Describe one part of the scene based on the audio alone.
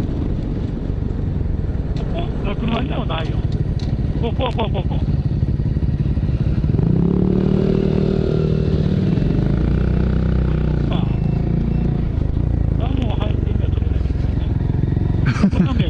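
A motorcycle engine rumbles steadily close by.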